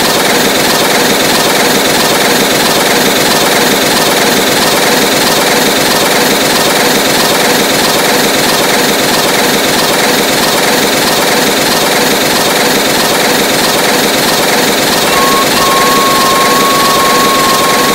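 A steam locomotive chuffs rapidly as it races along the rails.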